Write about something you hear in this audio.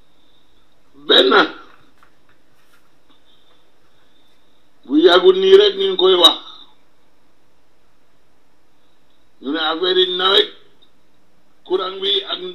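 A man speaks into a microphone in short bursts with pauses between.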